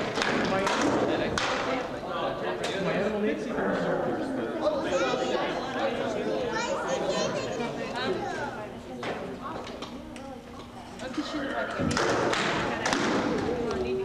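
Wooden swords clack sharply against each other in an echoing hall.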